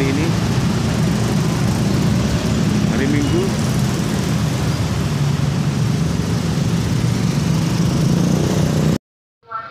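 Motorcycles and a van drive past at close range.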